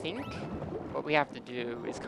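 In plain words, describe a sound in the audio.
Bubbles gurgle and burble underwater.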